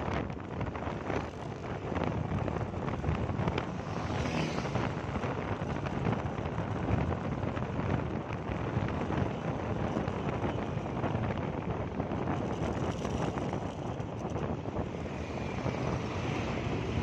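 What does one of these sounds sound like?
Wind rushes and buffets steadily while riding along a road.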